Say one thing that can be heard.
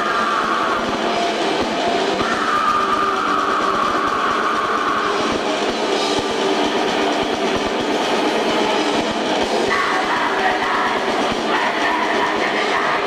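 A rock band plays loudly on stage, heard from a distance in a large echoing hall.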